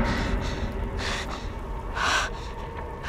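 A young woman pants heavily nearby.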